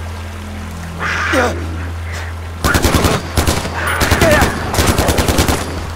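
A big cat snarls.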